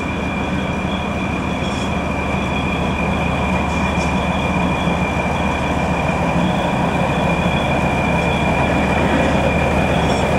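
A locomotive engine rumbles steadily as it approaches, growing louder.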